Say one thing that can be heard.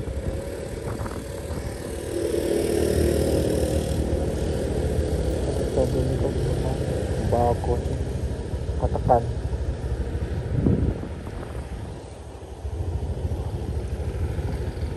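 A motorbike engine hums as it rides past on a road.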